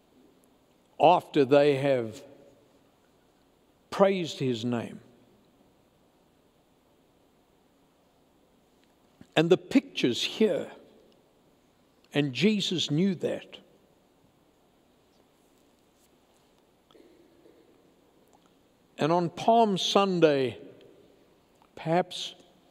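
An elderly man speaks slowly in short bursts through a microphone in a large echoing hall.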